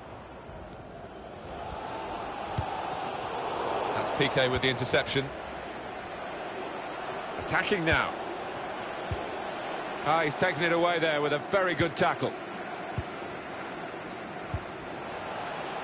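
A stadium crowd roars steadily in the background.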